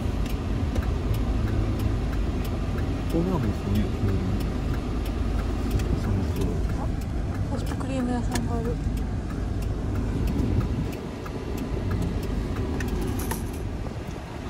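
A small vehicle's engine rumbles low and steady, heard from inside the cab.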